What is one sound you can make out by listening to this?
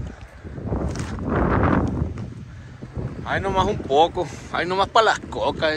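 A young man talks casually close by.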